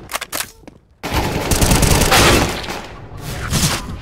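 An assault rifle fires a burst of shots.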